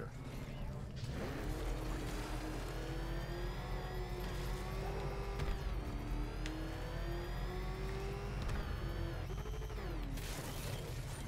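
A powerful car engine roars and revs up and down as the car speeds along.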